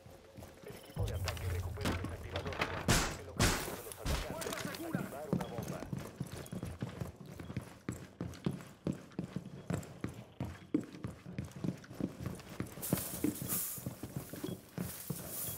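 Footsteps thud quickly on a hard floor indoors.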